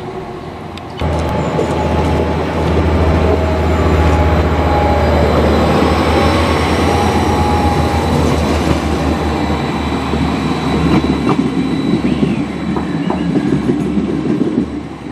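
A train rolls past close by with loud rumbling and clattering wheels.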